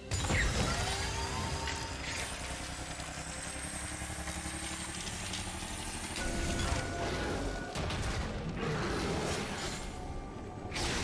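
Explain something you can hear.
Video game sound effects of spells and hits play throughout.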